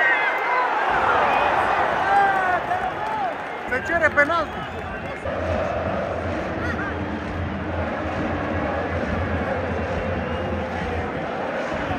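A large crowd of fans chants and roars loudly in an open stadium.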